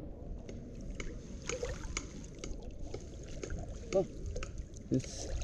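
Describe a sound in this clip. A fishing net splashes lightly into the water.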